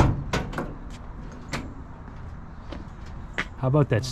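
A car door latch clicks open.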